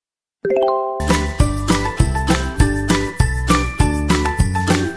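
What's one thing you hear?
Bright, bouncy music plays.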